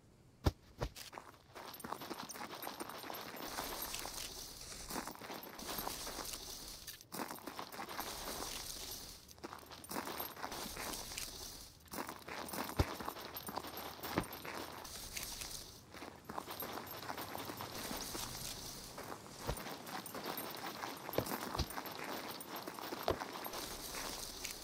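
Leafy bushes rustle as someone pushes through them.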